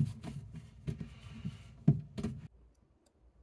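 Plastic pipe fittings knock and rattle as hands handle them.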